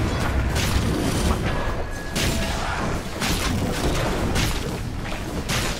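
Game characters clash with bursts of magic blasts and hits.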